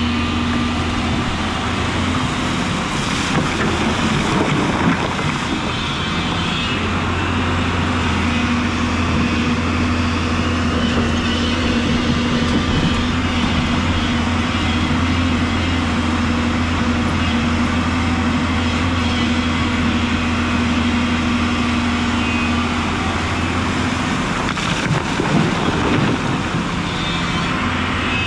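A diesel excavator engine hums and drones steadily.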